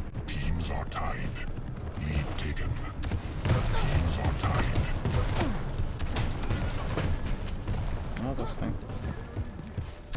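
Footsteps thud quickly.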